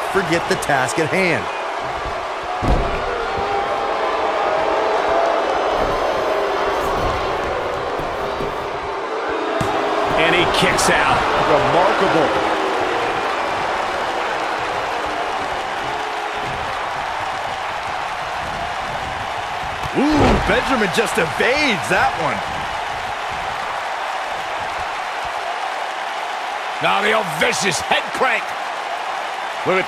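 A large crowd cheers and murmurs steadily in a big echoing arena.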